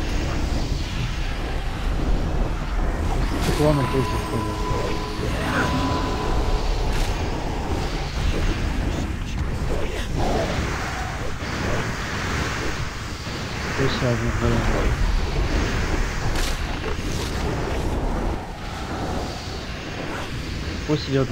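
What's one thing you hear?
Magic spells crackle and boom in a busy fight.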